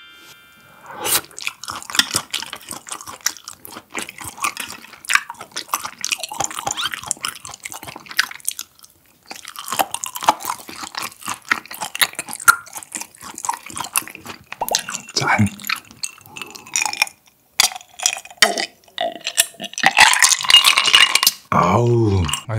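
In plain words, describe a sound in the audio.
A young man chews food noisily, close to the microphone.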